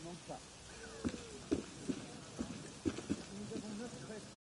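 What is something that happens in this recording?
Footsteps tread on a stone pavement.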